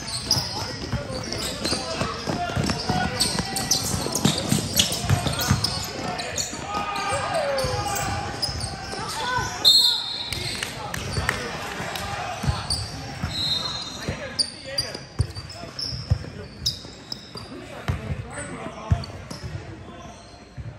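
A basketball bounces on a hard court floor in an echoing gym.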